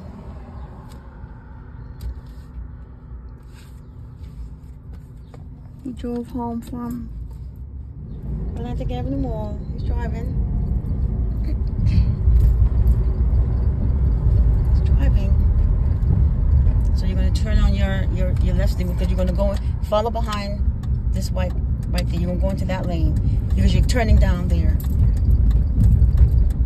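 A car engine rumbles low inside a moving car.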